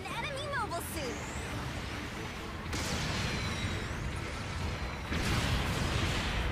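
Energy weapons fire with sharp blasts.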